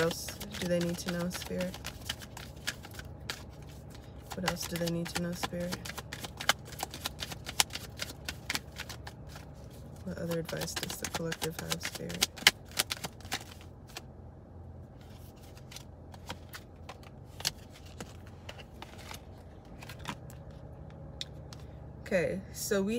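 Cards rustle and click as a young woman shuffles them.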